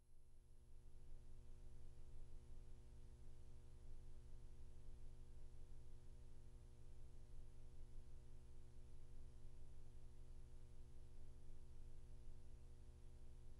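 Music plays faintly from an old gramophone record.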